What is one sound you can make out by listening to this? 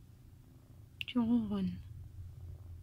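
A cat gives a short meow.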